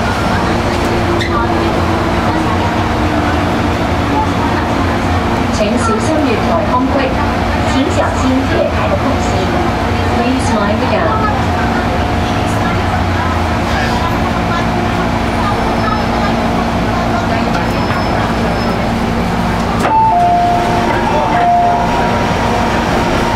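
A train rumbles and hums steadily along the track.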